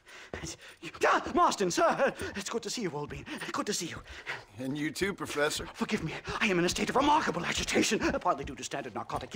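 An elderly man speaks with agitation, close by.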